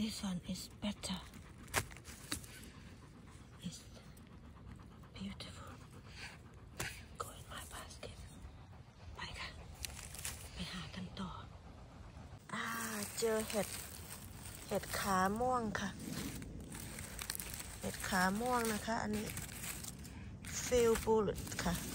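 Dry pine needles rustle and crackle as a hand works among them.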